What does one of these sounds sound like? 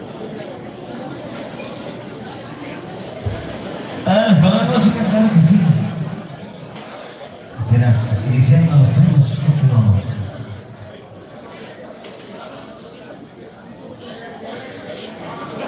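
Shoes shuffle and scuff on a hard floor.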